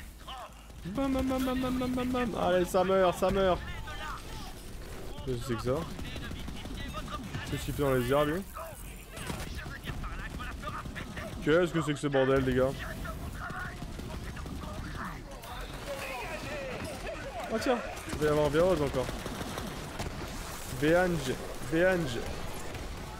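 A man talks with animation into a microphone.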